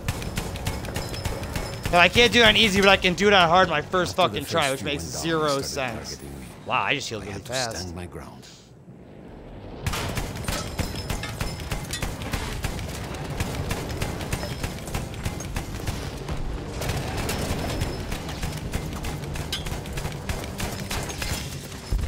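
A mounted machine gun fires rapid bursts.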